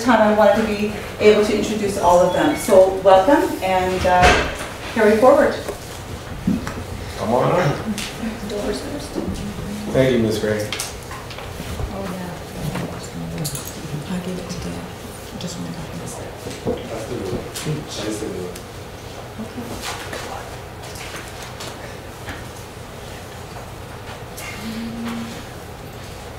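A woman speaks into a microphone in a large room.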